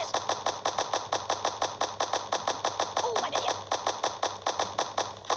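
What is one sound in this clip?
A toy gun fires rapid, even shots.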